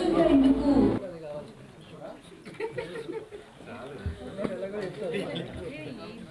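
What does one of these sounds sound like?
People murmur quietly in a large room.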